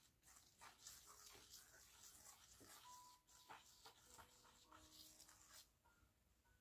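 A finger scratches and swishes through fine sand, close by.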